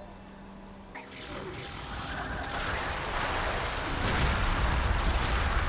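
Magic spells crackle and hiss in battle.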